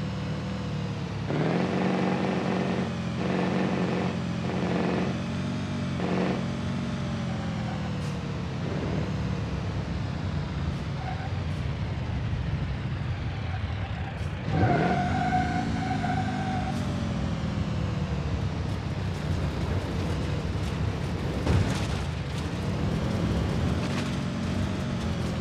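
A truck's diesel engine roars as it speeds up, its revs rising and falling with the gear changes.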